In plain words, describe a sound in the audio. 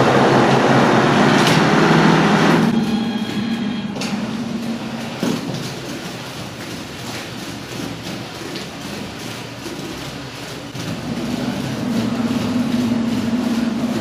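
A plastering machine motor hums steadily.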